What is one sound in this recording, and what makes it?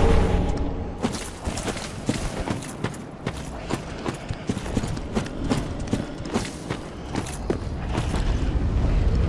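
Armoured footsteps crunch quickly over gravel.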